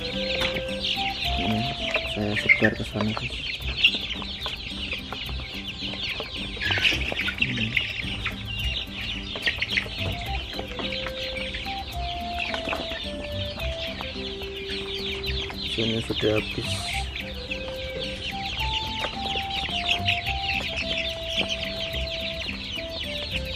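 Many chicks peep and cheep busily and without a break.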